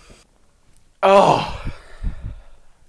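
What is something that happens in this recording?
A young man gasps loudly in surprise.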